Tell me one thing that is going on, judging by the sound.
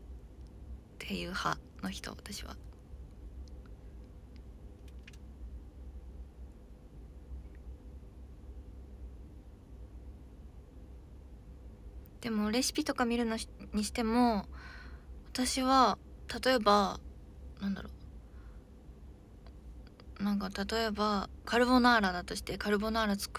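A young woman talks casually and close to a microphone, with pauses.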